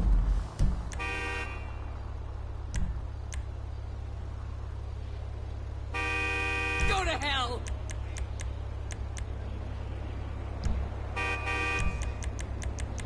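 A bright electronic chime sounds a few times.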